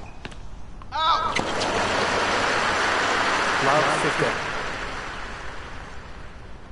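A crowd cheers and applauds loudly, then fades.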